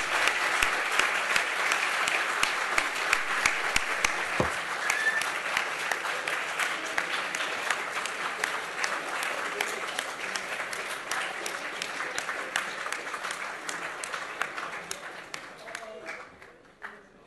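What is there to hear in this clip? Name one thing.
An audience applauds in a large hall and the clapping slowly dies away.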